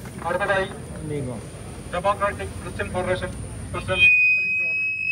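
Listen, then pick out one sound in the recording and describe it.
A man speaks loudly and forcefully through a microphone and loudspeaker, outdoors.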